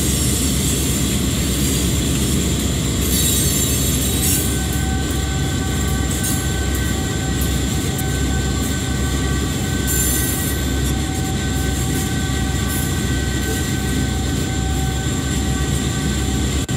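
Train wheels clatter along the rails.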